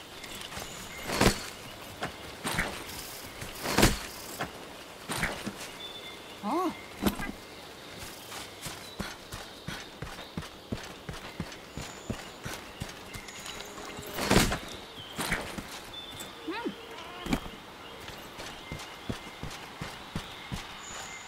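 Armoured footsteps thud steadily on soft ground.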